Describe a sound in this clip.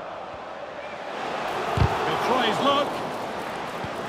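A stadium crowd swells into a loud cheer.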